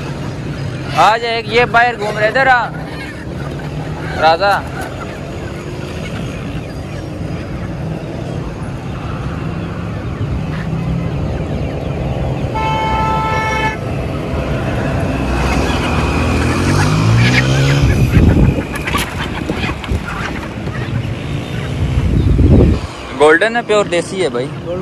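Chickens cluck and squawk loudly nearby.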